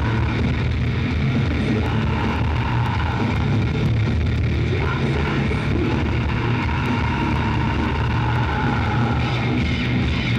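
Drums pound steadily.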